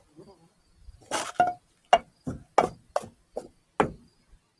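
Plastic cups knock and clack against a table.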